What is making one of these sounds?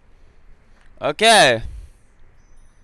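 A young man speaks briefly and loudly into a close microphone, his voice rising and falling.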